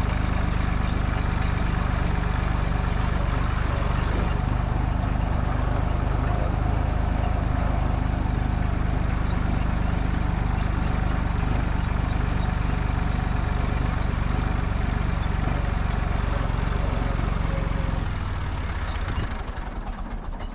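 A tractor engine rumbles steadily close by, then dies away.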